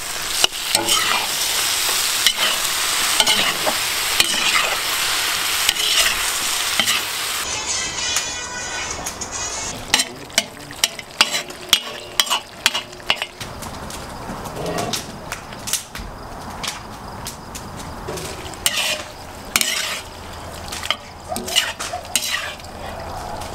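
Meat sizzles loudly in a hot pot.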